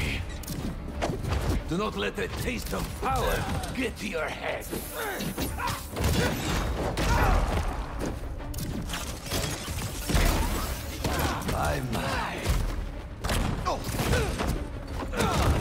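Heavy punches and kicks land with dull thuds.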